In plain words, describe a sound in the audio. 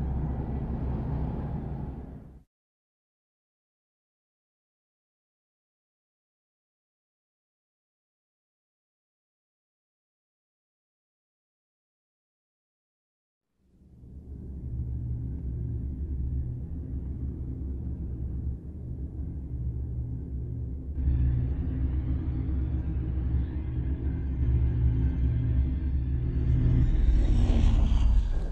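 A deep underwater rumble drones low and steady.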